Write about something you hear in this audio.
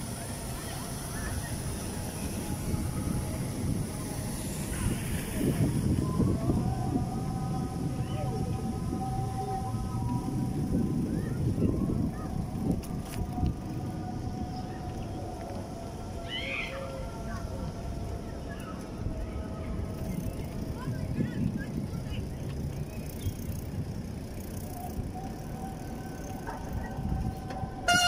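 Bicycle tyres roll and rumble over paving stones.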